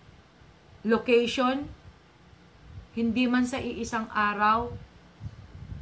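A middle-aged woman speaks with animation close to the microphone.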